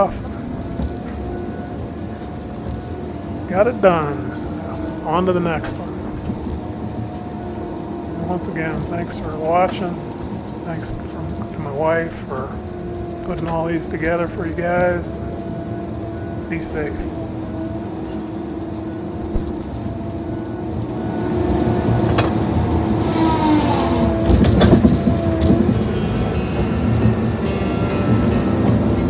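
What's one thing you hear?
A heavy machine's engine hums steadily, heard from inside its cab.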